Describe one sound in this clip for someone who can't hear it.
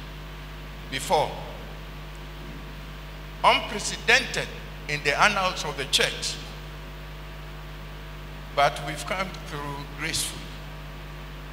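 An elderly man speaks slowly and solemnly through a microphone in a large echoing hall.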